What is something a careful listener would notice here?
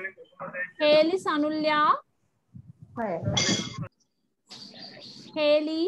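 A young girl speaks with animation over an online call.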